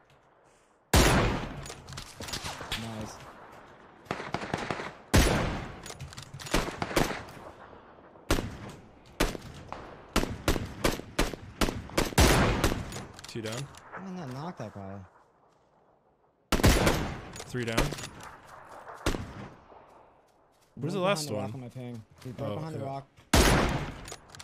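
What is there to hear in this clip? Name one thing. Sniper rifle shots crack loudly, each followed by a rolling echo.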